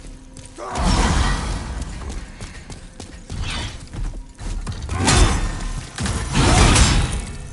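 Flames roar and whoosh in loud bursts.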